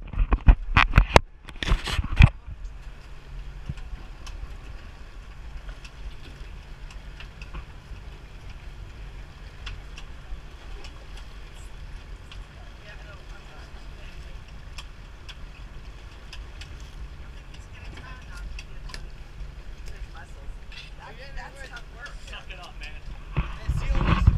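Water splashes and laps against a boat hull.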